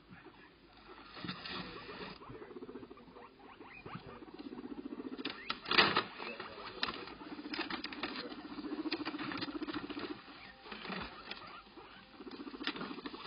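A small animal rustles and crinkles a paper bag.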